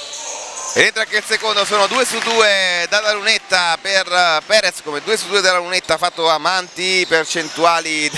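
A basketball bounces on a hard indoor court.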